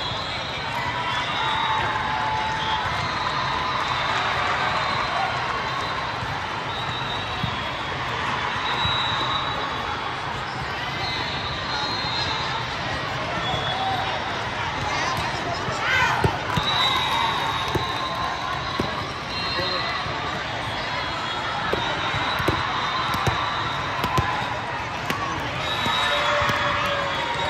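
Shoes squeak on a court floor in a large echoing hall.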